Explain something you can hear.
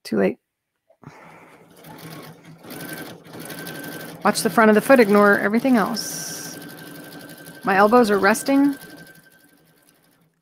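A sewing machine runs steadily, its needle stitching through fabric.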